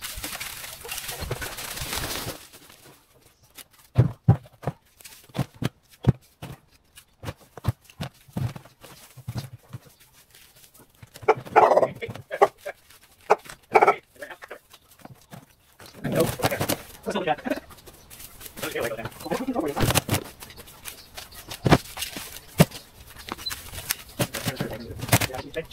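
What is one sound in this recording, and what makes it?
Dry branches rustle and crackle as they are handled.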